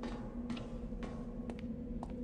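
Footsteps tap on a hard floor at an even pace.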